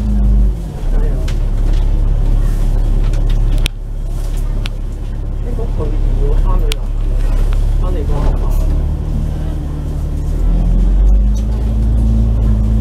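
Traffic rolls along a busy road outside.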